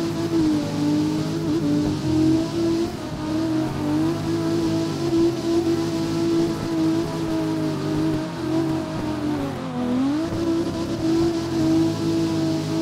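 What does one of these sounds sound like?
Tyres screech and hiss on asphalt while sliding.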